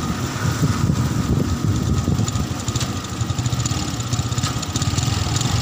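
A motorbike engine hums along the road nearby.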